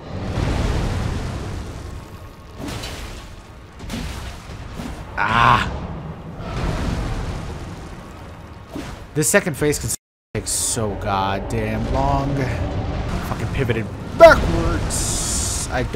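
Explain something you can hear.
Fire bursts and roars in explosions.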